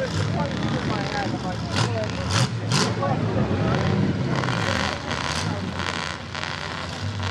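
Mud splashes and sprays from spinning tyres.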